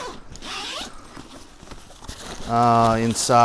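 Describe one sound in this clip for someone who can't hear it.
Fabric rustles as a bag is opened.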